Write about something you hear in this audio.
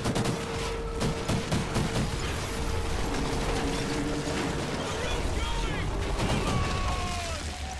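A helicopter's rotors thump overhead.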